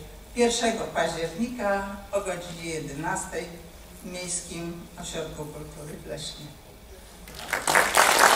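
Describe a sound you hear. An elderly woman speaks calmly into a microphone in a large hall.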